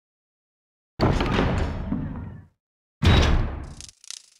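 A heavy metal door creaks and grinds open.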